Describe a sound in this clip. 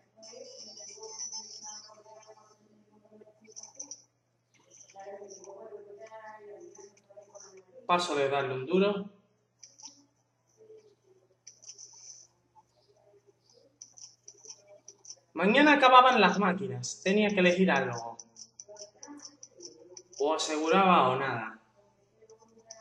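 Short electronic game blips chime from a small speaker.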